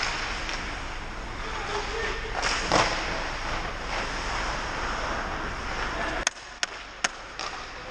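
Ice skates scrape and carve across the ice in a large echoing rink.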